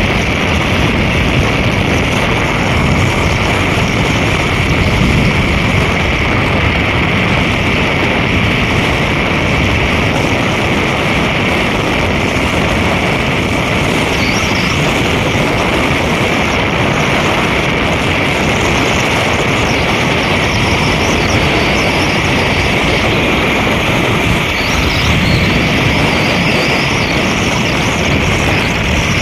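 Wind rushes loudly past a moving vehicle.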